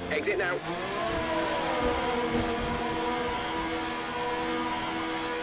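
A racing car engine revs up high as it pulls away.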